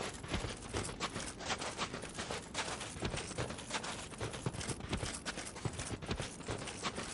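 Footsteps crunch quickly through deep snow.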